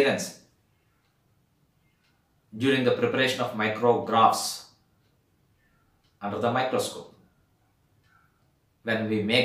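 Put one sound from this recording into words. A middle-aged man speaks calmly and clearly into a microphone, in short phrases with pauses.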